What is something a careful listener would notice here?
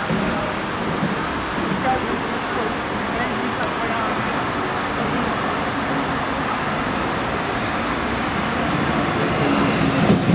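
A tram rumbles along the rails as it approaches, growing louder, in an echoing underground station.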